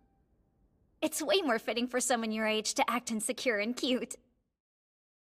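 A young woman laughs and speaks excitedly up close.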